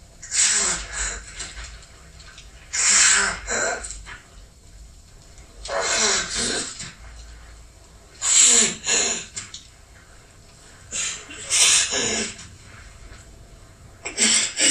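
A man groans hoarsely in strained bursts, close by.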